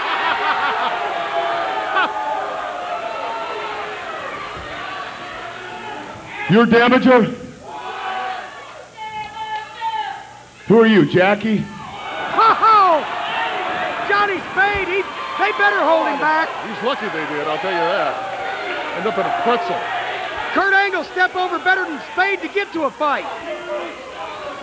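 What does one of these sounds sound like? A man shouts angrily into a microphone, heard through loudspeakers in a large echoing hall.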